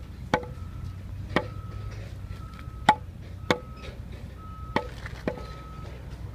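A metal bar strikes a concrete block with sharp ringing knocks.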